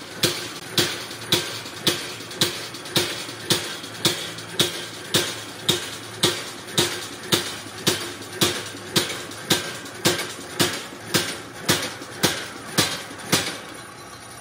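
A machine knocks in a steady, fast rhythm.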